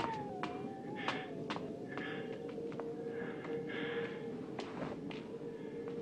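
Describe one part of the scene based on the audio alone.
Footsteps hurry across a stone floor.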